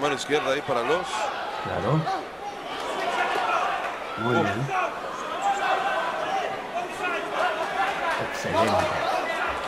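A crowd murmurs and cheers in a large arena.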